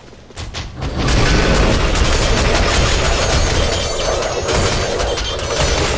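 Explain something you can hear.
Game combat erupts with rapid blasts and impacts.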